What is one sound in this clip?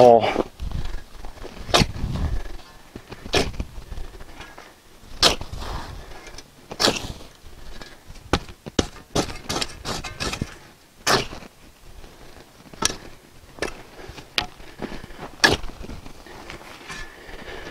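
A shovel scrapes and chops into dry soil, again and again.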